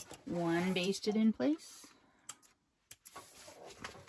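Scissors snip through a cord.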